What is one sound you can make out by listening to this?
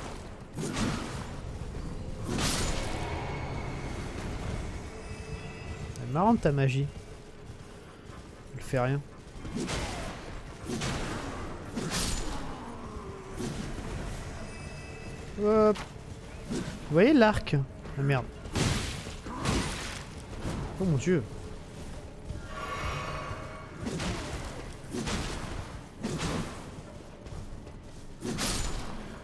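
Blades swing and clash in quick, sharp strikes.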